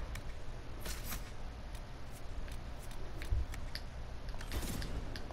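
Soft menu clicks tick quickly as cards slide past.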